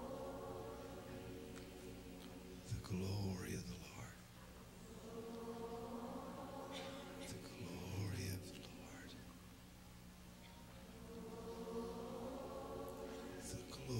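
A keyboard plays sustained chords.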